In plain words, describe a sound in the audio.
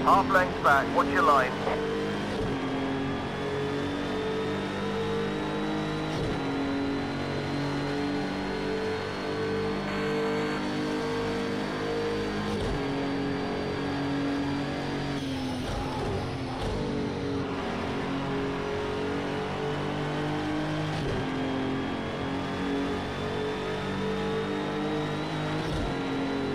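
A racing car engine roars loudly, rising in pitch as it speeds up and dropping as it shifts gear.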